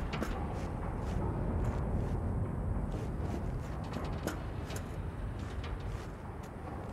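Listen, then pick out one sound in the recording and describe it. Footsteps clang on metal grating.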